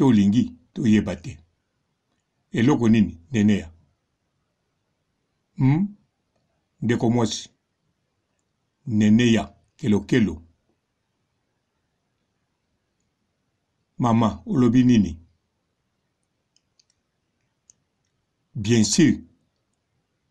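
A man speaks close to a microphone in short bursts with pauses.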